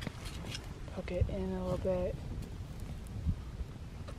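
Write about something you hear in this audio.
A stick pokes and rustles through burning twigs.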